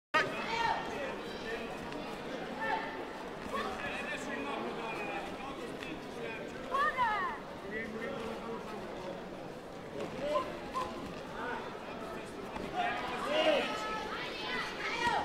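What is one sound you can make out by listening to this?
A crowd of people talks and calls out in a large echoing hall.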